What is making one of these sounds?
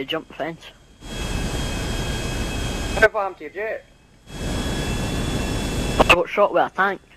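A small propeller plane's engine roars and sputters.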